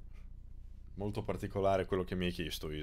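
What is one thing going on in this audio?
A young man speaks with animation, close to a microphone.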